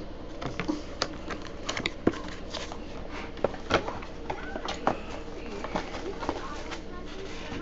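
A cardboard box knocks and slides on a table.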